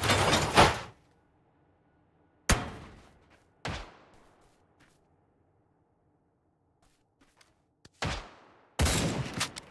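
Rifle shots crack loudly and echo away.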